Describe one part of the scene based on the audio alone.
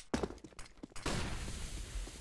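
A grenade bursts with a sharp bang.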